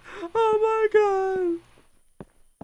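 A young man speaks in a drawn-out, sing-song voice close to a microphone.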